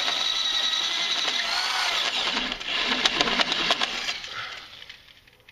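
A power drill whirs as a hole saw grinds through metal.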